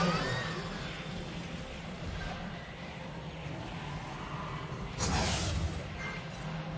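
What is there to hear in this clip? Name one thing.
Magic spell effects whoosh and crackle in a video game battle.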